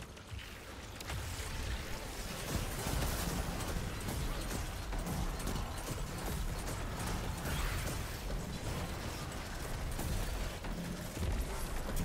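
Energy blasts crackle and explode.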